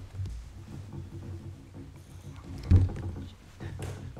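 A chair rolls and bumps on the floor.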